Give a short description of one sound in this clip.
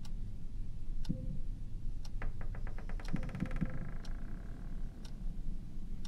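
Metal weights clank and rattle on chains.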